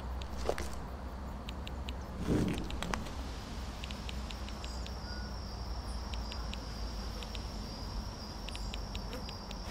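An electronic detector gives off short, quick clicks.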